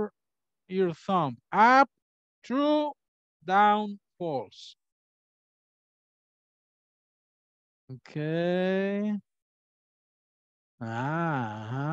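A man speaks with animation over an online call, drawing out his words in a sing-song way.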